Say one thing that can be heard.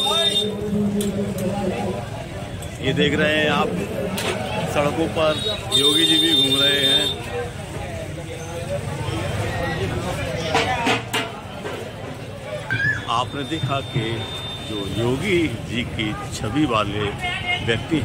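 A crowd murmurs outdoors in a busy street.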